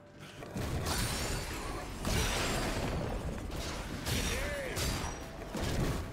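Magic spells whoosh and crackle in bursts during a fight.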